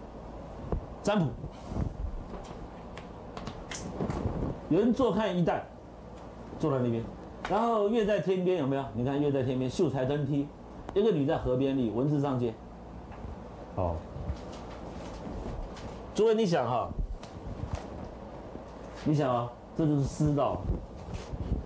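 A middle-aged man speaks and reads aloud in a lecturing tone, close by in a slightly echoing room.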